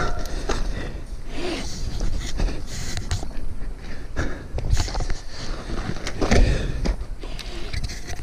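Footsteps crunch on loose gravel.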